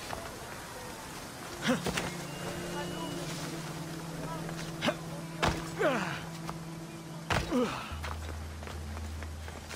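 Hands scrape and grip rough rock while climbing.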